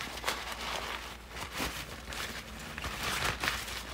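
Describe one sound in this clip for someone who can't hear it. Fabric rustles as it is handled.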